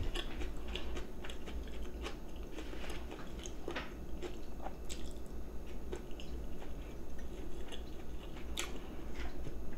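Chopsticks click against bowls.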